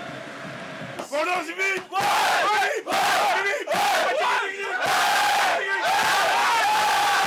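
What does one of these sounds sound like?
A group of young men sing and shout loudly together close by.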